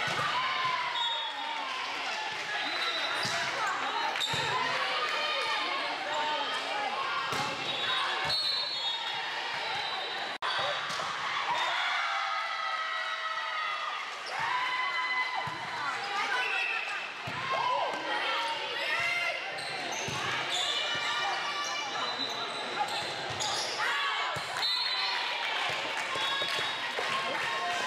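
Girls and young women shout and cheer in a large echoing gym.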